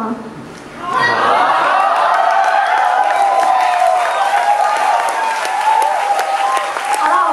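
An electric guitar plays through loudspeakers.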